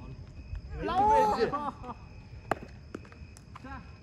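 A cricket bat knocks sharply against a ball.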